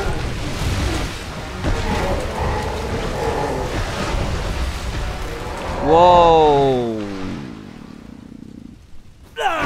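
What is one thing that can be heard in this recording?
Water splashes and churns heavily.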